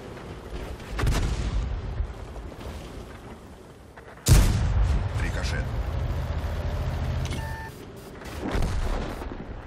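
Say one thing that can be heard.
A tank cannon fires with a loud, sharp boom.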